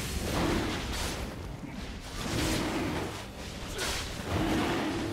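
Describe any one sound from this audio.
Magic blasts and sword hits crash in bursts during a fantasy battle.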